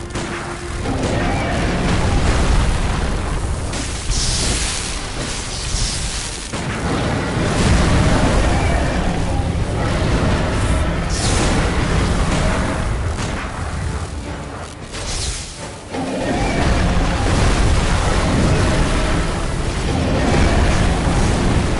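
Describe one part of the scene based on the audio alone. A huge beast roars and thrashes about.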